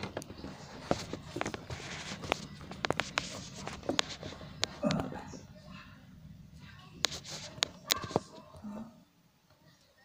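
Cloth rustles and knocks right against the microphone.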